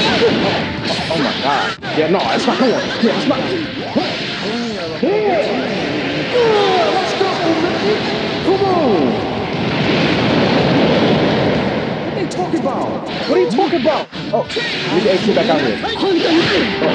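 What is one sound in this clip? Fighting game hits and blasts crash and whoosh.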